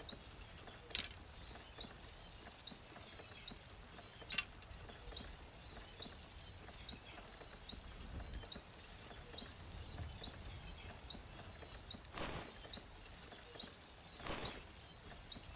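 Coins clink briefly.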